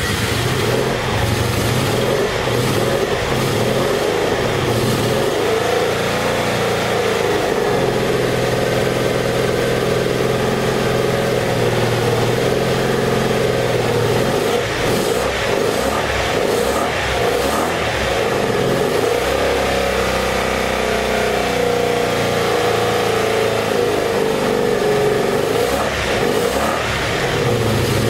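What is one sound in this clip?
A motorcycle engine idles roughly and revs up and down close by, its exhaust sputtering.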